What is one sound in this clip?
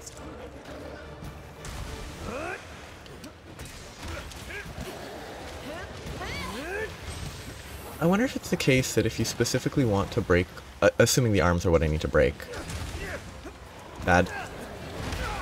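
Water splashes as fighters move through it.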